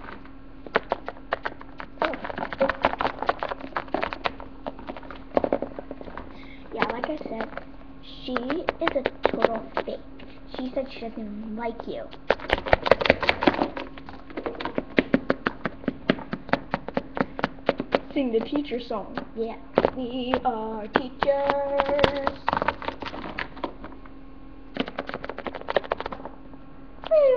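Small plastic toys tap and clatter on a hard floor.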